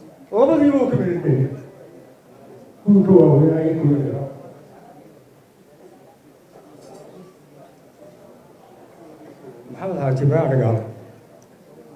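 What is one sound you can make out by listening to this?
A man speaks calmly into a microphone in short bursts.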